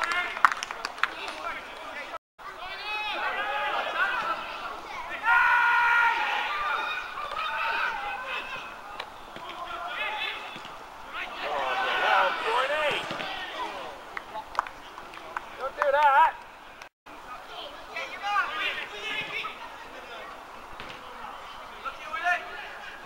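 Men shout and call to each other across an open playing field.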